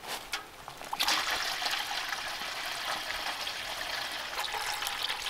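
Liquid pours and splashes into a metal bucket.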